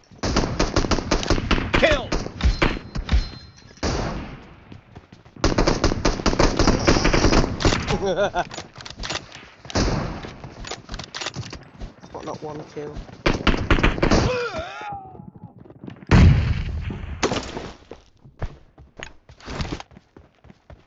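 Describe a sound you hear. Rapid gunfire crackles in loud bursts.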